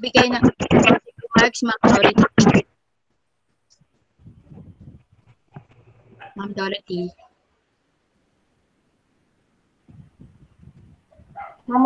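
A woman speaks through an online call.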